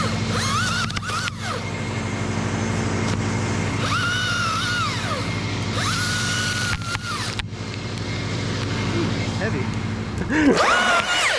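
A chainsaw engine runs loudly close by.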